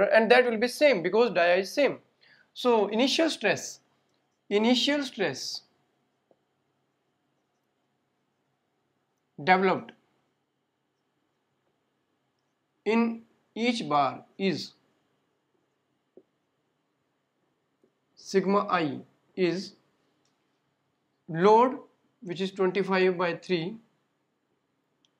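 A man speaks calmly and explains, close by, with pauses.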